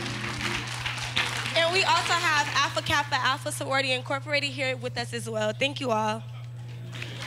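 A group of young women sing together loudly with a lively tune.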